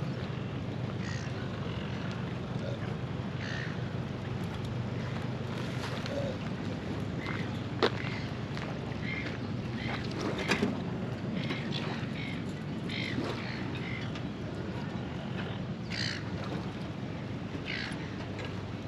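Birds chirp now and then nearby.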